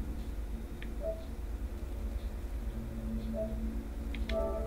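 A game menu gives a soft, short chime as its selection moves.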